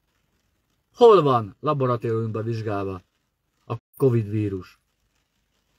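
A middle-aged man speaks close to the microphone, in an earnest tone.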